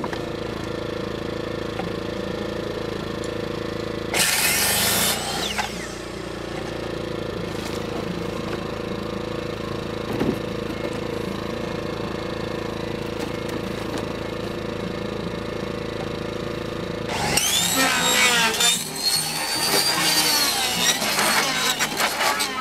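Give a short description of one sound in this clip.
A small generator engine hums steadily nearby.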